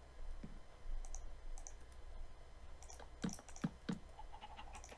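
Wooden blocks thud as they are struck.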